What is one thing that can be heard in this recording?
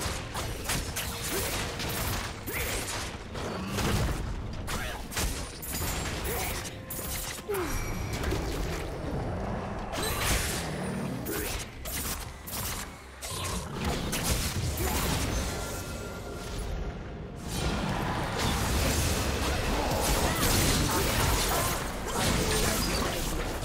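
Game sword strikes clang repeatedly.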